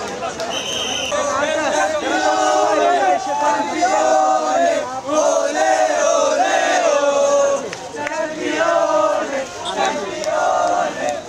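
Young men chant loudly together in a crowd.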